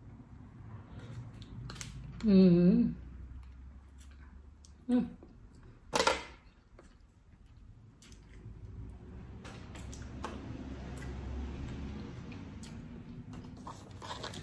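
A woman chews food with wet, crunchy mouth sounds.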